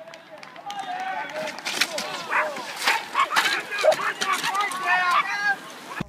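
A bicycle crashes and clatters onto the road.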